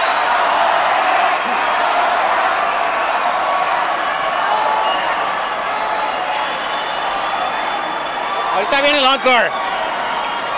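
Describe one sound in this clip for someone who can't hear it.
A large crowd cheers and roars steadily in a big open space.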